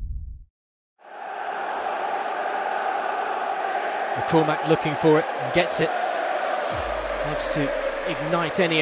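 A large crowd murmurs and cheers in a stadium.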